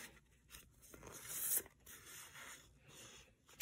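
Paper sheets rustle as they are handled.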